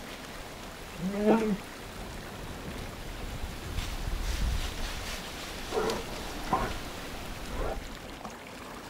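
A bear gives short, low grunts and moans.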